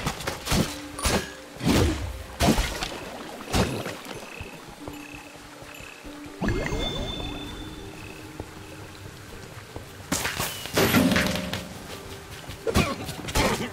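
Game weapons strike and clash in quick bursts.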